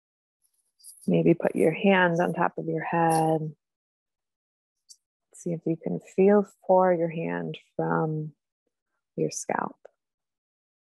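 A young woman talks casually through an online call, in short bursts with pauses.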